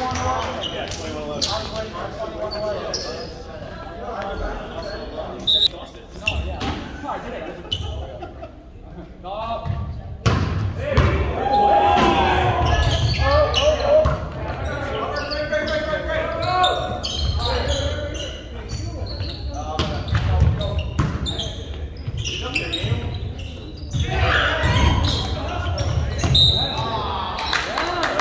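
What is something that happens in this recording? A crowd of young people cheers and shouts in a large echoing gym.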